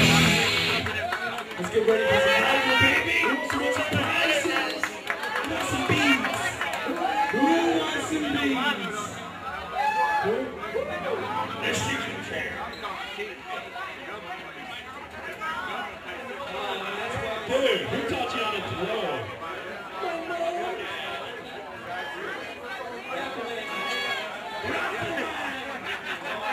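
A crowd chatters nearby.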